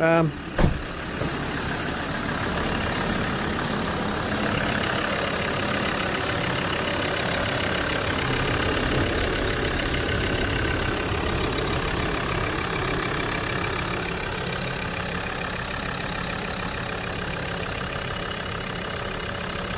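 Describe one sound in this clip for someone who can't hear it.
A diesel engine idles steadily with a rattling clatter.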